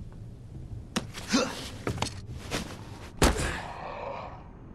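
Heavy bangs and thuds sound close by.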